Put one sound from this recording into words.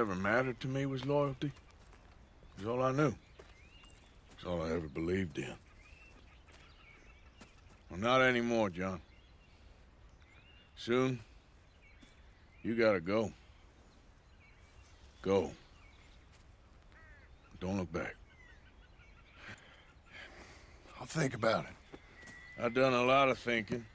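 A man speaks calmly in a low, gruff voice, close by.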